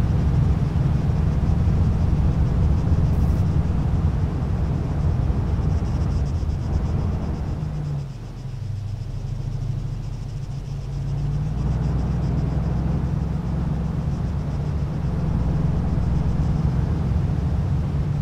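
Tyres roll over a paved road.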